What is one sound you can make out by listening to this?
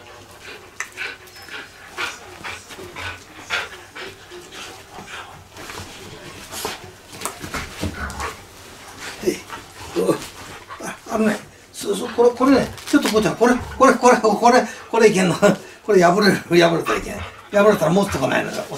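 A dog barks and growls playfully.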